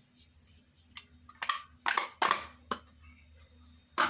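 Thick liquid pours from a plastic cup into a bowl.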